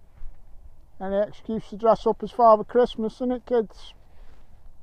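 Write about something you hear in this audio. A middle-aged man talks calmly close to a microphone, outdoors.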